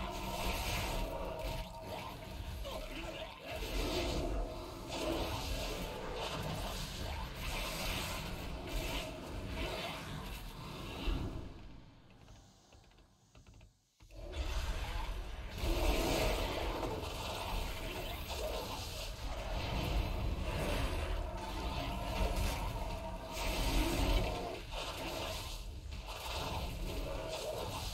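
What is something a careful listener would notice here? Game spell effects crackle and boom in a busy battle.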